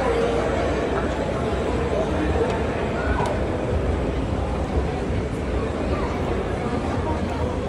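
A moving escalator hums.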